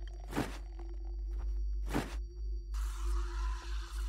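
A small refrigerator door opens.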